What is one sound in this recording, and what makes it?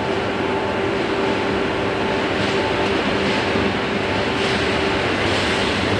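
Train wheels clatter over the rails.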